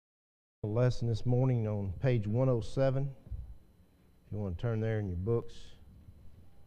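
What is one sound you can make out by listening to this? A middle-aged man speaks slowly and deliberately into a microphone in a large, echoing room.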